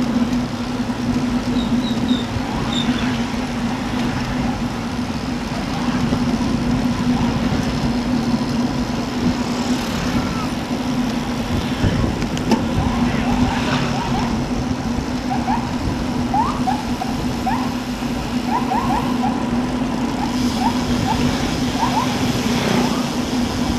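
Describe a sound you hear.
Wind rushes steadily past the microphone outdoors.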